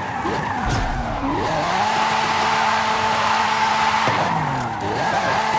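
Tyres screech loudly in a long drift.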